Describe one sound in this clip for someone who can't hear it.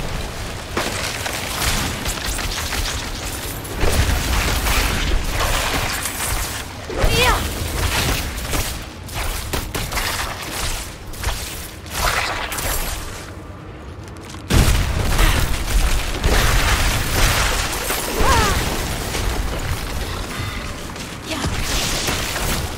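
Spell blasts and weapon hits crash and crackle again and again in a game fight.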